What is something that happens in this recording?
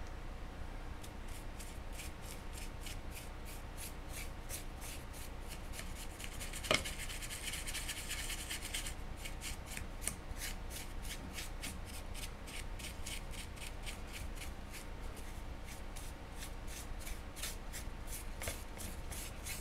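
A brush scrapes in quick, even strokes against a metal surface.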